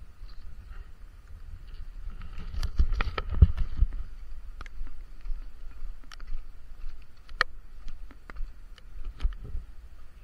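A plastic sack rustles and crinkles.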